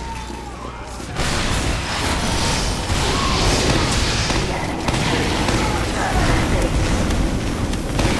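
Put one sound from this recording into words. A flamethrower roars with a rushing whoosh.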